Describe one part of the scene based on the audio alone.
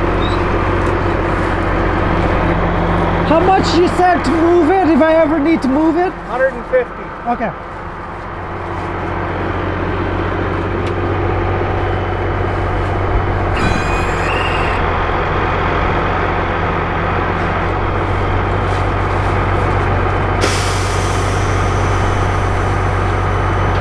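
An engine hums steadily throughout.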